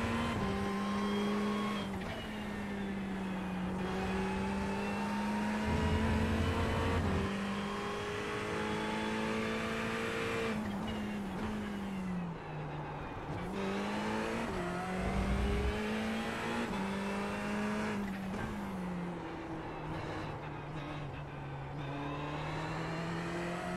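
A racing car engine roars steadily, its pitch rising and falling with the gear changes.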